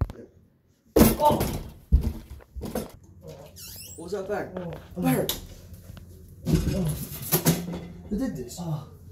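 A metal table clatters as it is knocked over.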